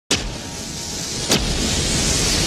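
A match strikes with a sharp scrape.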